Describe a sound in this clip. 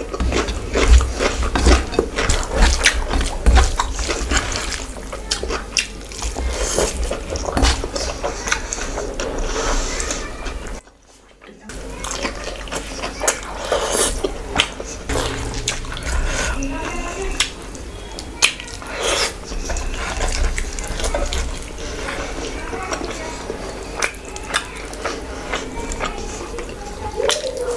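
Fingers squish and mix soft rice close to a microphone.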